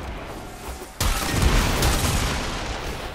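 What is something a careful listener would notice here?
A loud blast bursts, with a shower of crackling sparks.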